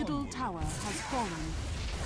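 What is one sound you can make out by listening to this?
An electric spell crackles and hums.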